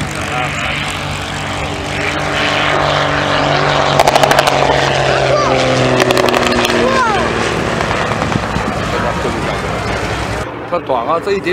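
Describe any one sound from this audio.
A propeller plane's engine roars as it flies low overhead and passes by.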